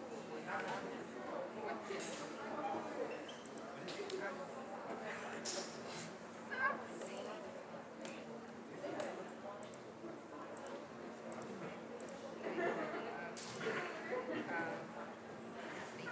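Many people chatter in a large echoing gym.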